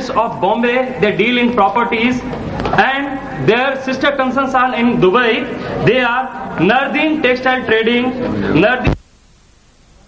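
A man sings with feeling through a microphone and loudspeakers.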